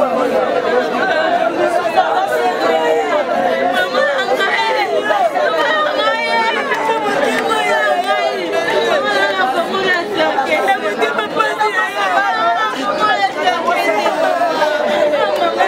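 A crowd of women talk and shout over each other.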